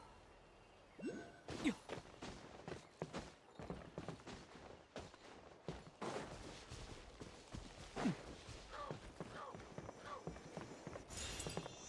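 Quick footsteps patter over grass and wood.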